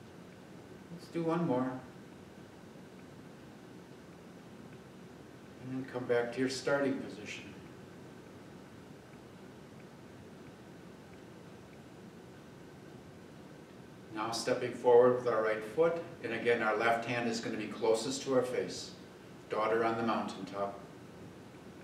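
A middle-aged man speaks calmly in short phrases, in a large room with a slight echo.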